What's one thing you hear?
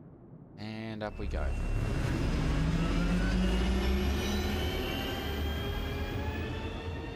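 A spacecraft's engines roar as it lifts off and climbs.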